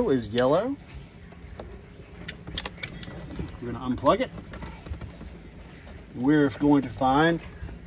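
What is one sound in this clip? Plastic wire connectors click and rattle.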